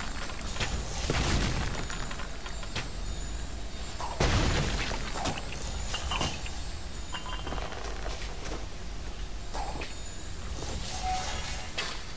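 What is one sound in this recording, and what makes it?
Swords clash and magic spells whoosh in a fight.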